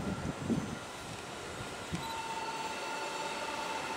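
A train approaches from a distance with a low hum.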